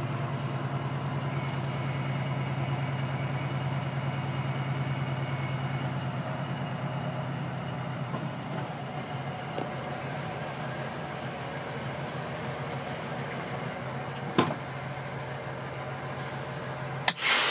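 A truck engine hums steadily from inside the cab.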